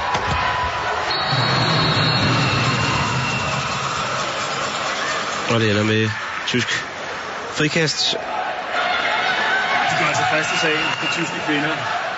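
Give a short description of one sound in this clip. A large crowd cheers and chants steadily in an echoing arena.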